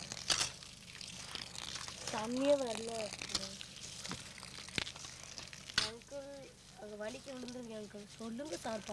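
Water pours and splashes into a pot of grain.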